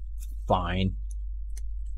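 A man speaks briefly near a microphone.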